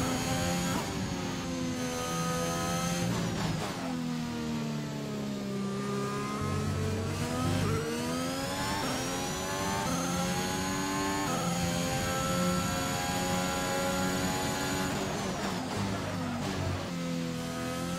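A racing car engine screams, rising and falling in pitch as gears shift.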